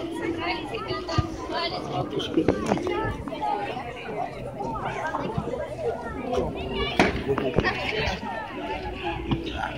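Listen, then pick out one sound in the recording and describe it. A crowd of children chatters and shouts outdoors.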